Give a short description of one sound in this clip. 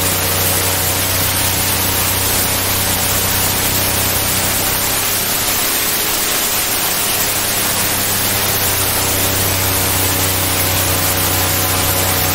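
An airboat's engine and propeller roar loudly and steadily.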